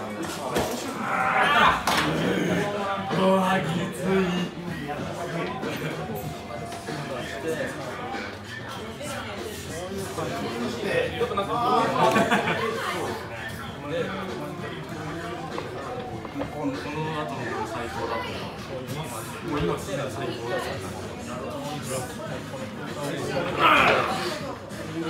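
A man shouts with effort at close range.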